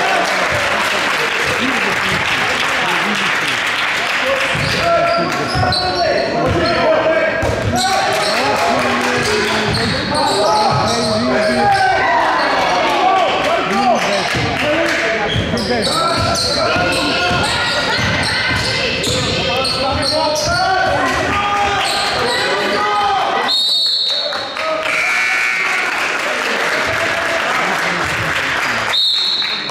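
A crowd of spectators talks and cheers in a large echoing hall.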